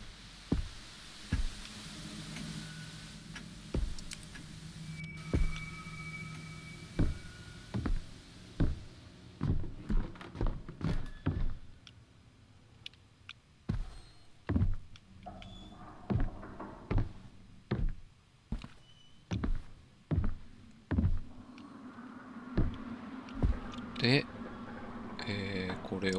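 Footsteps thud slowly on creaking wooden floorboards and stairs.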